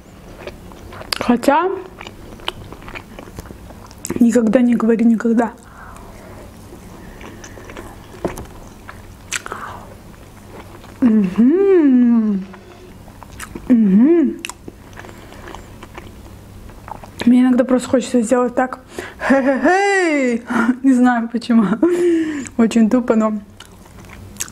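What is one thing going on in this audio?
A young woman speaks softly and expressively close to a microphone.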